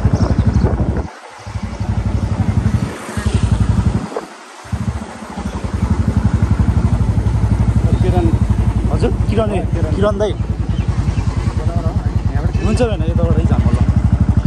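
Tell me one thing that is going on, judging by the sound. A motorcycle engine putters steadily up close.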